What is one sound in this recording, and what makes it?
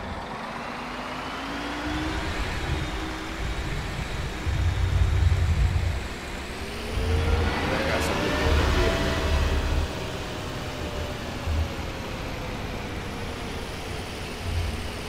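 A bus engine rumbles steadily, its pitch slowly rising and falling.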